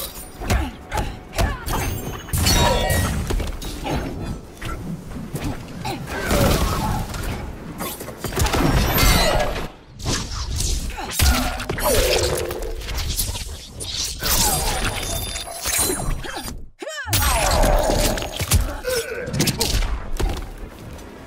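Punches and kicks thud heavily in quick bursts.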